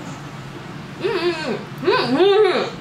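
A young woman hums with delight while eating.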